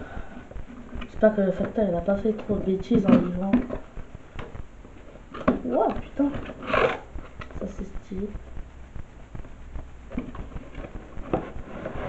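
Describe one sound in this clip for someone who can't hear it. A cardboard box taps and rustles as hands turn it.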